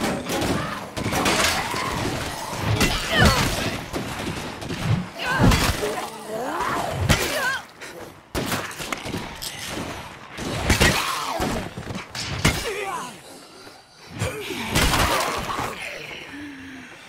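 Zombies growl and snarl up close.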